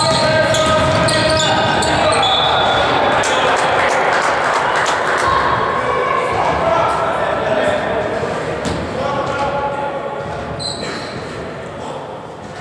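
Young men shout to each other during a basketball game in an echoing sports hall.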